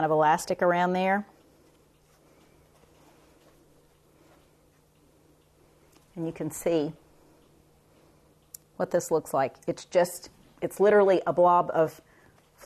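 An older woman talks calmly and closely into a microphone, in short bursts with pauses.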